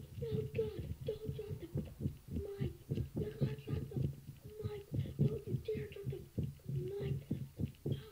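A song plays with a rhythmic beat.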